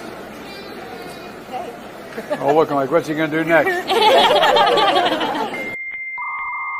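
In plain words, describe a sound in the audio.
A crowd chatters and laughs nearby.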